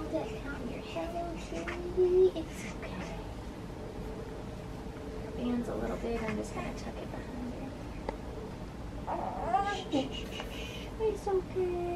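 A newborn baby fusses and whimpers.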